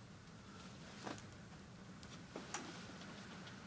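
Clothes hangers click and scrape as garments are moved on a rack.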